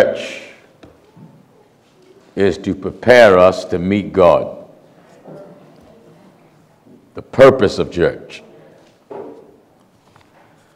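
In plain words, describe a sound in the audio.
A man speaks slowly and forcefully into a microphone, with pauses, in an echoing hall.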